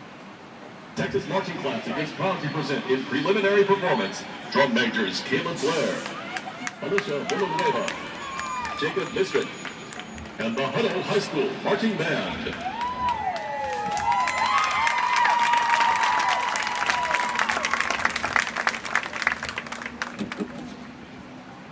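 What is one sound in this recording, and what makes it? Drums beat and cymbals crash with the marching band.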